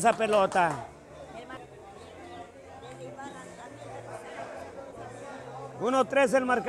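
A crowd chatters and murmurs in the background.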